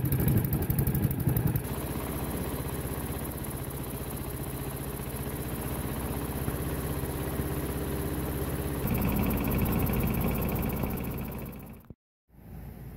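A small engine runs with a steady drone.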